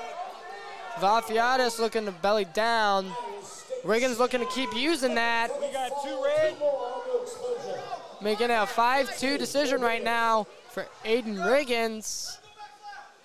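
Men and women in a crowd shout and cheer loudly in an echoing hall.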